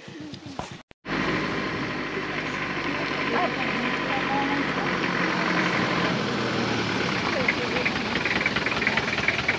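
A van's engine runs with a steady rumble nearby.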